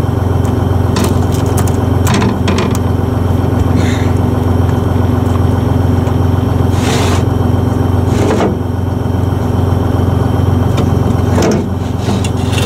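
A heavy object knocks and thuds against wood.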